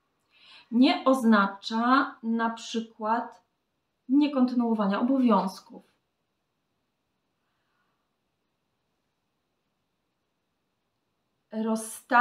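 A young woman speaks calmly and expressively close to a microphone.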